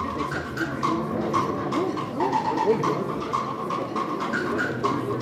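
A crowd of people chatters outdoors close by.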